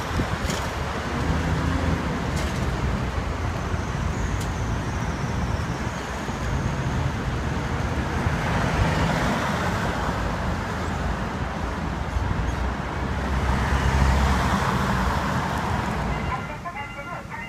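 Traffic rumbles steadily along a wide road.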